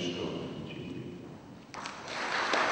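A man speaks into a microphone in an echoing hall.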